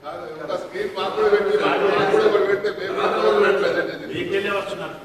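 A group of men clap their hands in a large hall.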